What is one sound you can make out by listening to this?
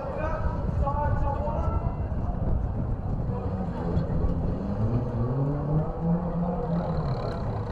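A tractor engine rumbles loudly and revs up.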